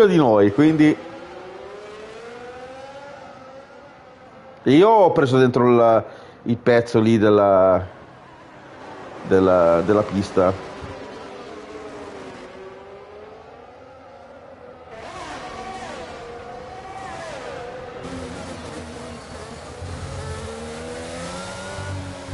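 A racing car engine whines and revs up and down as gears change.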